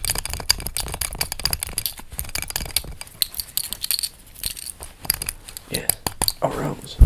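Fingers rub and tap on a metal buckle close up, with crisp scratching sounds.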